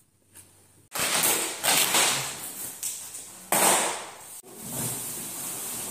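A large cardboard box scrapes and thumps as it is moved.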